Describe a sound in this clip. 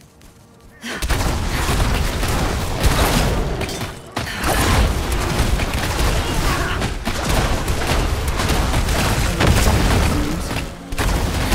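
Weapons strike and clash in a fast fight.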